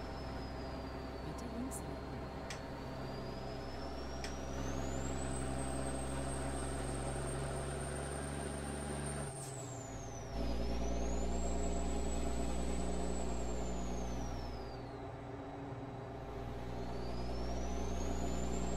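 A truck engine drones steadily, its whine rising and falling with speed.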